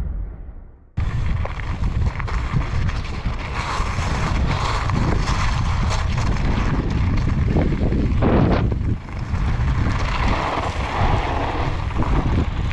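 Wind rushes steadily past outdoors.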